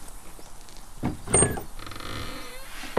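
Heavy wooden cellar doors creak and thud open.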